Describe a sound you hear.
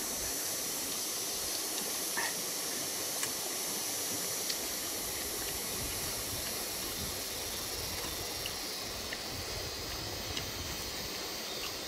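A man cracks open a small shell with his fingers.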